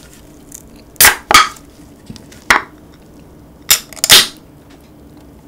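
A metal can's tab cracks open with a sharp snap.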